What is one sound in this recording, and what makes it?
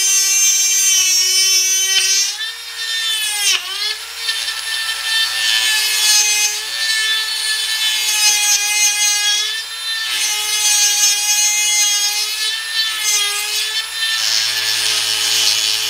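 A grinding bit scrapes against metal.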